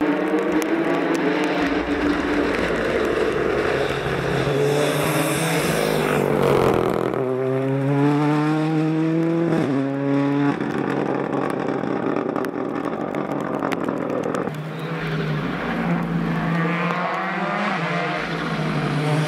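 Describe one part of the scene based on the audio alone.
Tyres crackle on the road as a rally car passes.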